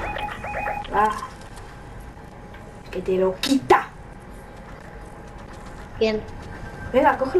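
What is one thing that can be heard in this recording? Short electronic chimes and blips sound in quick bursts.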